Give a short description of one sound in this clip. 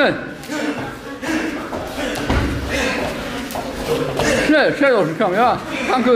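Bare feet shuffle and thud on a foam mat.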